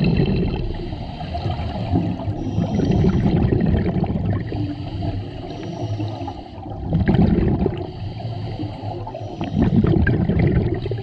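A diver breathes out through a regulator, with bubbles rumbling and gurgling underwater in repeated bursts.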